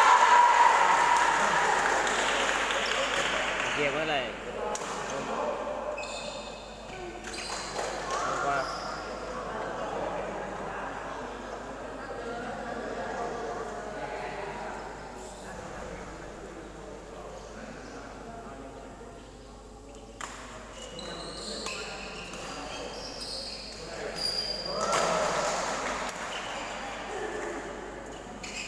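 Players' shoes squeak on the floor.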